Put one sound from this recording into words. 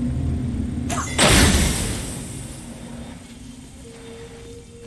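A magical burst whooshes loudly and slowly fades.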